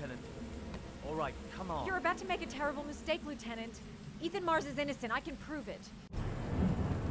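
A woman speaks urgently.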